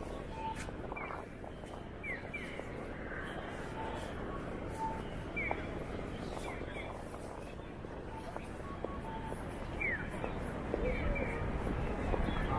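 A pedestrian crossing signal chirps repeatedly.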